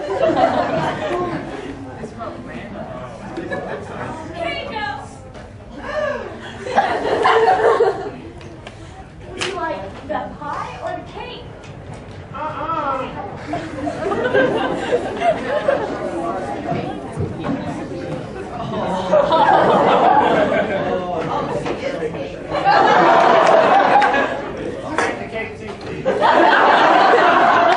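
An audience chatters and laughs in a large echoing hall.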